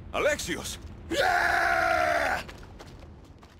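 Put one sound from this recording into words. A man shouts with effort.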